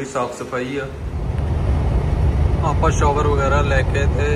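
A truck engine rumbles steadily while driving on a road.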